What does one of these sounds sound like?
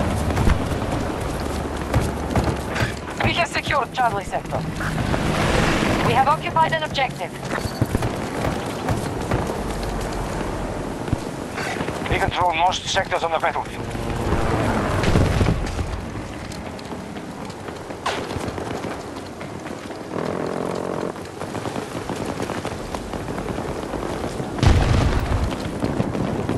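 Footsteps run quickly over grass and then hard ground.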